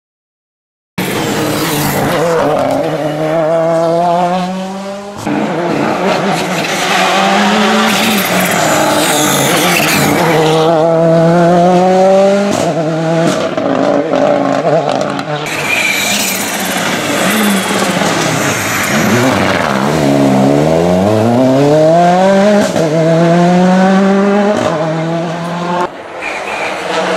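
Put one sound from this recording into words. A rally car engine roars loudly as it races past and shifts gears.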